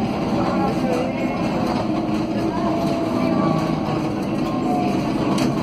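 A tram rumbles steadily along its track.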